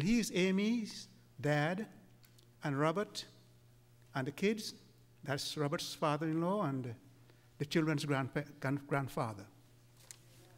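An elderly man speaks slowly and calmly through a microphone in a large room.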